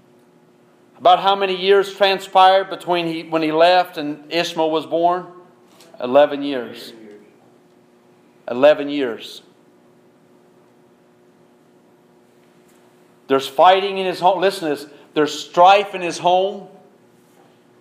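A man preaches forcefully through a microphone in an echoing room.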